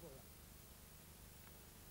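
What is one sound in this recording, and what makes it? A man speaks into a microphone outdoors.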